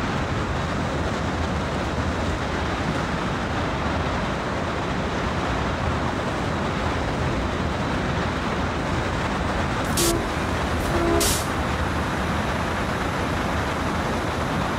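A locomotive engine rumbles steadily as the train rolls along the rails.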